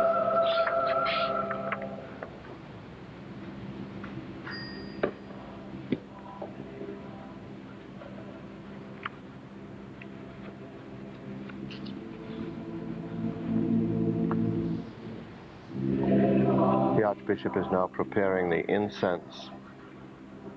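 A choir sings slowly in a large echoing hall.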